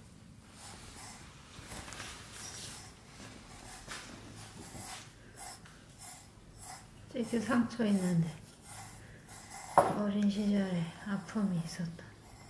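A brush strokes through a cat's fur.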